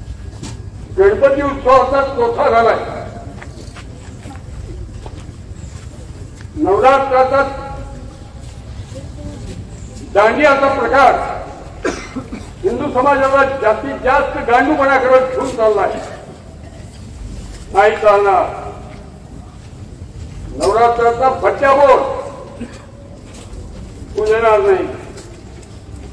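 An elderly man speaks forcefully into a microphone, in short bursts with pauses, over a loudspeaker outdoors.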